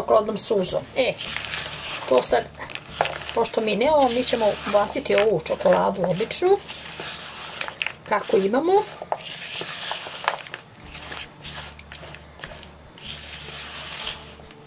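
A spatula scrapes and stirs thick batter in a plastic bowl.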